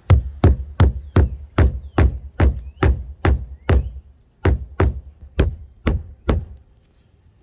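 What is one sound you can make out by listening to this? A hammer taps a nail quickly and repeatedly.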